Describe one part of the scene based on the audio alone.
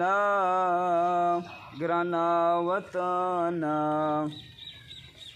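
A young man chants in a long, sustained melodic voice, close by and outdoors.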